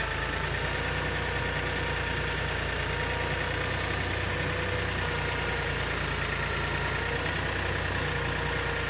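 A hydraulic pump whines as a loader arm moves.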